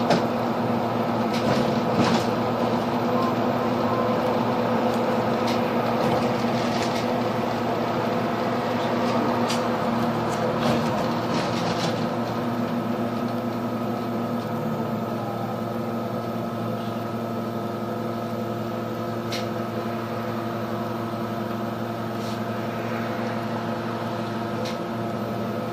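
The bus body rattles and clicks as it drives along the road.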